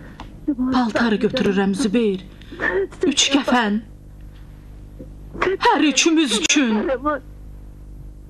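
A woman pleads in a distressed, tearful voice.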